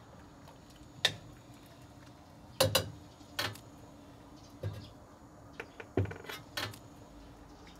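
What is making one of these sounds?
A metal hook clinks.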